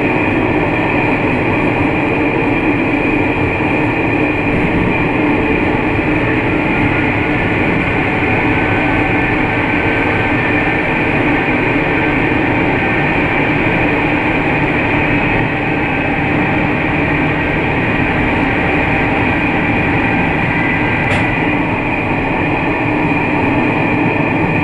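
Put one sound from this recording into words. A diesel railcar rumbles along the rails through a tunnel, with a roar that echoes off the tunnel walls.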